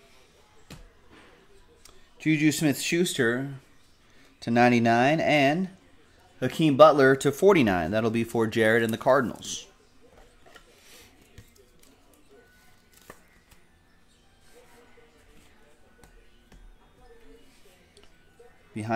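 Cards rustle and slide between fingers.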